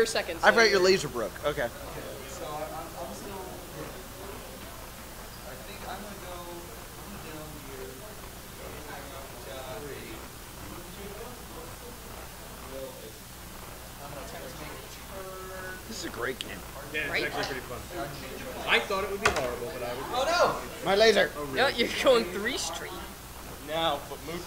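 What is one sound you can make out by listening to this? Young men talk and shout excitedly close by.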